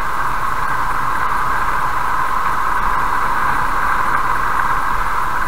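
A car drives along a road with a steady rumble of tyres.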